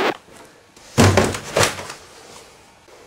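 Hands rustle and fumble with a small plastic object.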